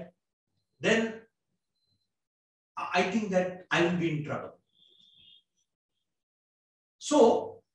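A man speaks into a microphone in short phrases, with pauses.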